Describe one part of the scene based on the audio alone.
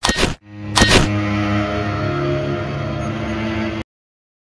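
Slow, dark game music plays.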